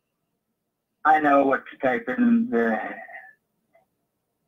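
An elderly man speaks calmly, close to a microphone.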